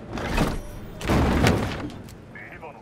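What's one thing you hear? A heavy body thuds into a metal container.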